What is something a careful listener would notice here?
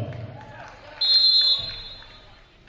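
A referee's whistle blows sharply in a large echoing hall.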